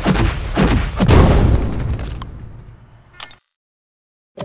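A deep booming knockout impact rings out and fades.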